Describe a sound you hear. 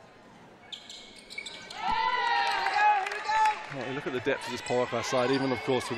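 Sneakers squeak on a hardwood court as players run.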